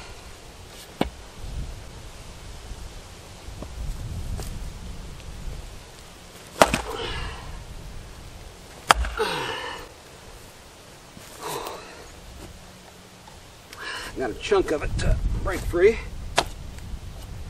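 An axe thuds into a log.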